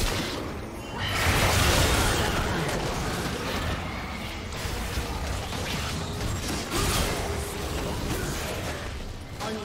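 Magic spells burst and crackle in a busy fight.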